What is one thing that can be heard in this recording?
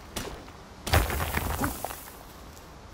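Rock crumbles and breaks apart.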